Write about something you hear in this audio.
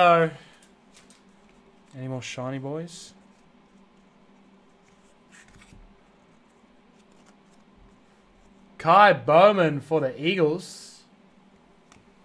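Cards shuffle and rustle between hands.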